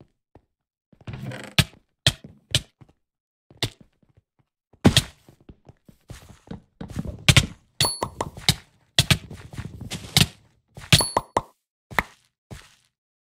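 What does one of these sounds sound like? A sword strikes a player with sharp hits.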